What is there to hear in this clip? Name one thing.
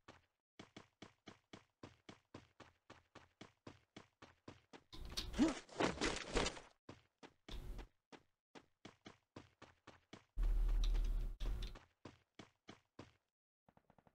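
Footsteps run quickly and steadily over ground.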